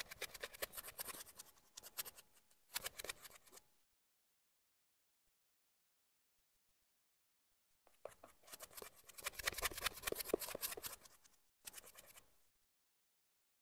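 A shaving brush swishes and squelches rapidly through lather close by.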